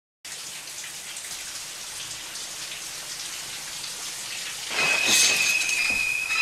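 Water sprays steadily from a shower head with a hiss.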